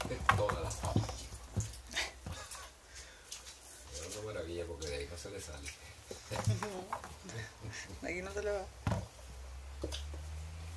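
A kitten scrabbles and thumps against the sides of a plastic tub.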